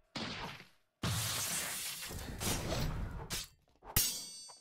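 A magic blast whooshes loudly.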